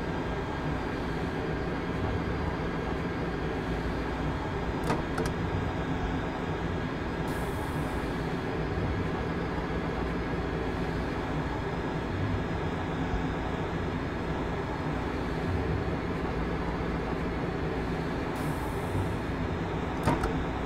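A train rumbles steadily through a tunnel.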